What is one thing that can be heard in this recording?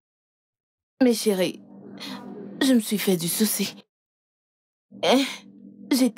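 A young woman speaks close by, upset and pleading.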